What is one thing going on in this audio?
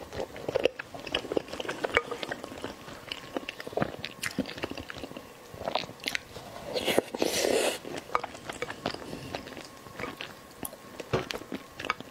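A spoon scrapes and clinks against a glass bowl.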